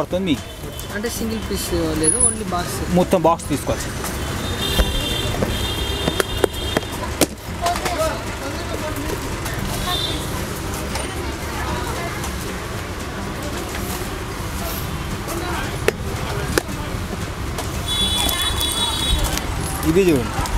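A plastic box rattles and clicks as it is handled.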